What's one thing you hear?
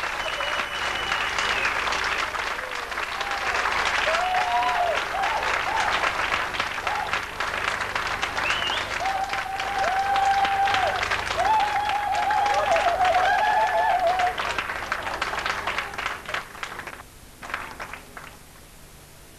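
A crowd of children shouts, cheers and shrieks loudly in a large echoing hall.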